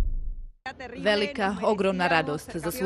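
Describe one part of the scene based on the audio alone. A middle-aged man speaks cheerfully close to a microphone.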